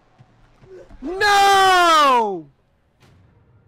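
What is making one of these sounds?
A young man lets out a loud, falling yell into a close microphone.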